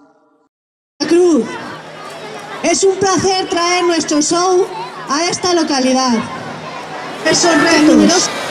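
An older woman speaks through a microphone and loudspeaker outdoors.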